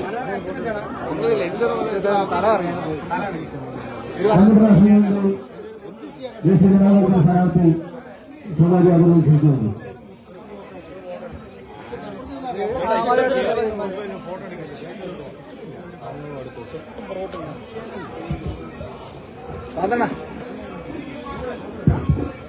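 Several men talk at once.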